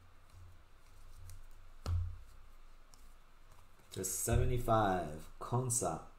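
Trading cards rustle and slide between fingers.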